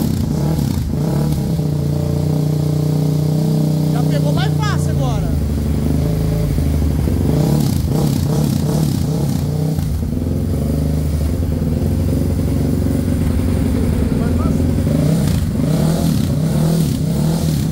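A motorcycle engine idles loudly and steadily.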